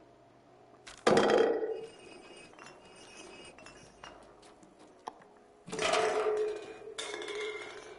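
A cat jumps and lands with a soft thump.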